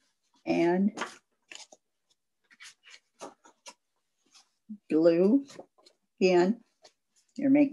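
Cardboard rustles as a card is handled.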